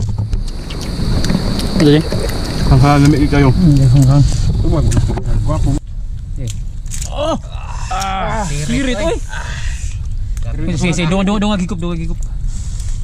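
Young men talk with one another close by.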